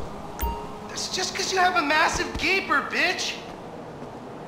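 A man speaks calmly up close.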